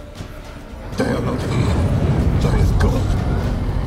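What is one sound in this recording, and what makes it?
A man speaks in a low, gruff voice.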